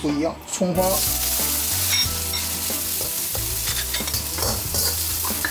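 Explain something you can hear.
A metal ladle scrapes and clinks against a wok.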